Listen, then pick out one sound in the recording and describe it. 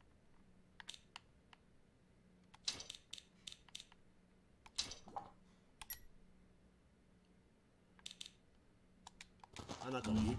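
Short menu blips and clicks sound one after another.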